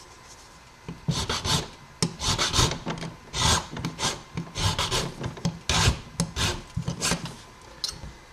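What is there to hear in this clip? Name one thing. A small metal file rasps in quick strokes.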